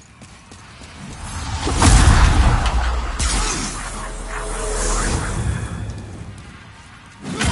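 A magical blast bursts with a loud rushing whoosh and crackle.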